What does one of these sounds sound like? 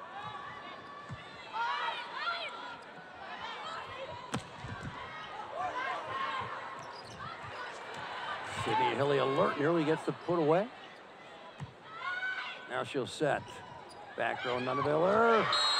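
A volleyball thuds as players hit it back and forth.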